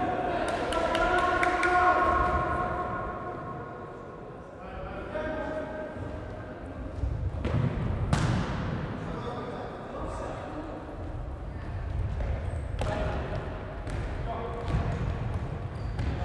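Young men shout to one another across the hall.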